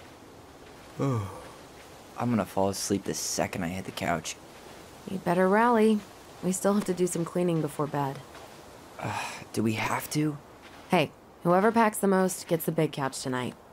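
A young man talks calmly, close by.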